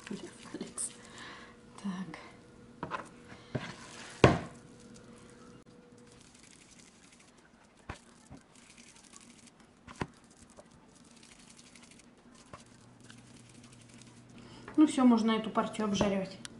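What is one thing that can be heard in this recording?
Hands squish and pat soft ground meat.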